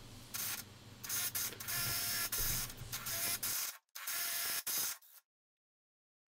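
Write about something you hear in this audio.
A hand torch hisses loudly in short bursts, then stops.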